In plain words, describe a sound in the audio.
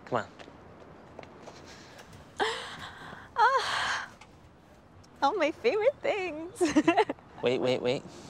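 A young woman laughs lightly.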